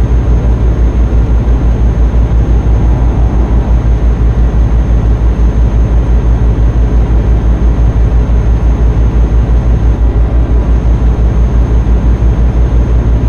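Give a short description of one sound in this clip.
A truck engine rumbles steadily with a fast, even throb.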